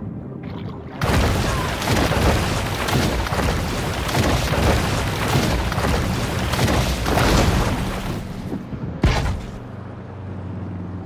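Water splashes and churns as a shark swims fast through waves.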